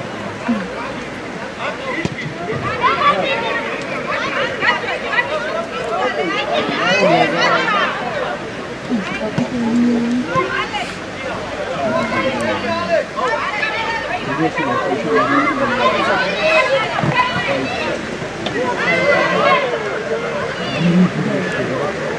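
Adults on the sidelines shout encouragement.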